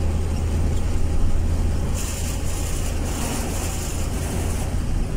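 Large trucks whoosh past close by.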